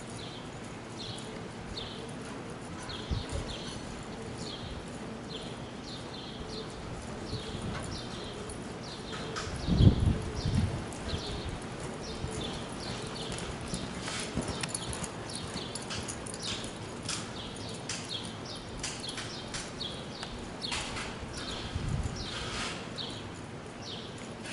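A horse's hooves thud rhythmically on soft dirt.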